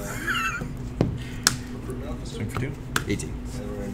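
Playing cards slap softly onto a table.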